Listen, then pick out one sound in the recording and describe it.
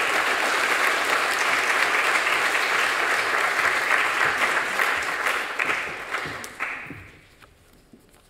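An audience applauds in a large hall, then the applause fades out.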